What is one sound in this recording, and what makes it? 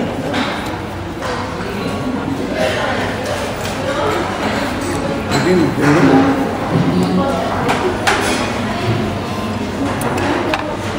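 Several adults chat softly nearby.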